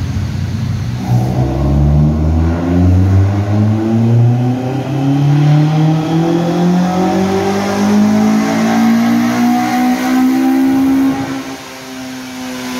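A car engine revs up steadily into a loud, rising roar, then suddenly drops off.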